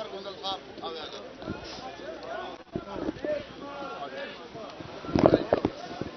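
Several men talk over one another in a crowd outdoors.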